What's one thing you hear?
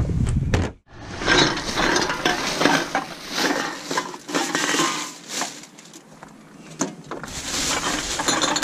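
Aluminium cans clink and rattle together in a plastic bag.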